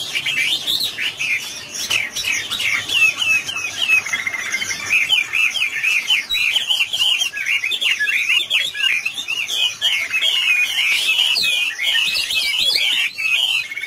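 A songbird sings a rapid, warbling song close by.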